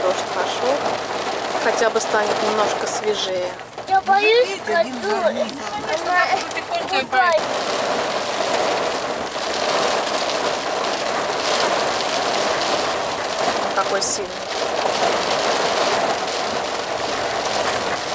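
A car engine hums while driving slowly.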